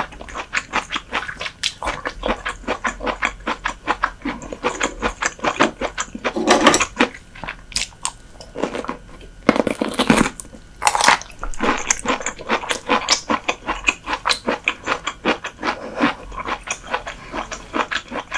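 A young woman chews crunchy food loudly and closely into a microphone.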